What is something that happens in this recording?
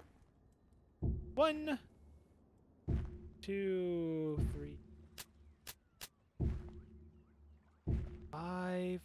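Wooden blocks thud as they are placed.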